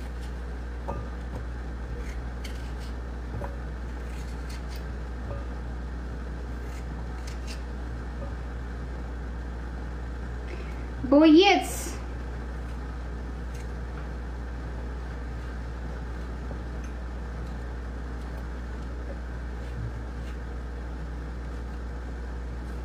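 Small things clink softly against a metal sink.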